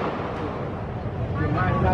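Smoke hisses out of a canister.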